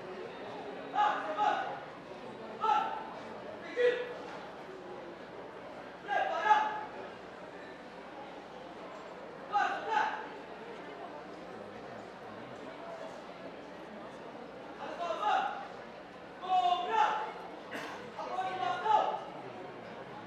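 A man calls out loudly at a distance, in short bursts.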